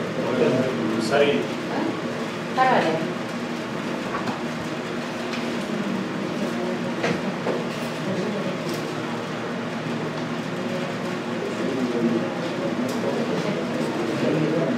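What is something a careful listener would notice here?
A man speaks calmly to a room, his voice echoing slightly.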